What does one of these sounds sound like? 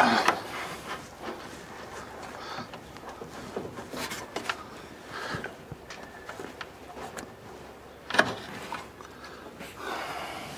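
Metal tools clank against an engine.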